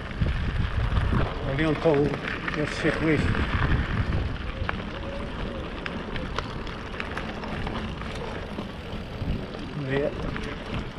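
Bicycle tyres crunch and rumble over a dirt trail.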